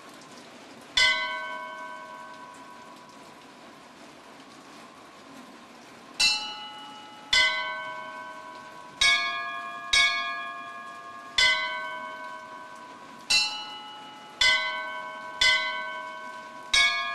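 Small bells ring out one at a time, each chime ringing on and fading.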